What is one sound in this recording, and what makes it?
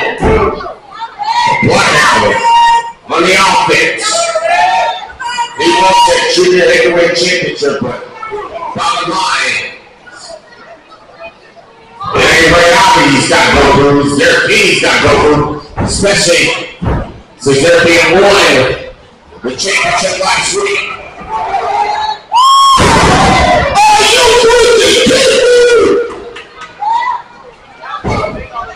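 A crowd of men and women shouts and cheers loudly in an echoing hall.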